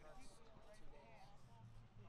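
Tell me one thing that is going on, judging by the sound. A man talks with animation outdoors.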